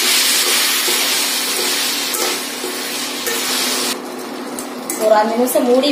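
A spoon stirs and scrapes against a metal pan.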